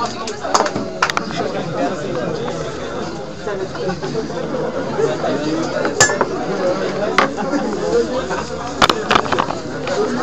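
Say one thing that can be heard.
A crowd of young men and women chatters nearby in a room.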